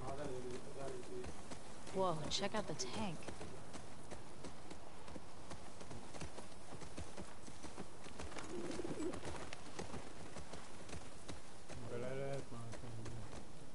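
A horse trots through grass.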